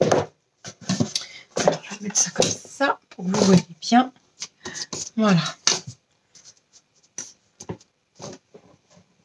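Cardboard pieces rustle and tap as hands handle them.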